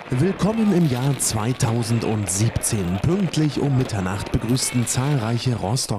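Fireworks bang and crackle in the distance outdoors.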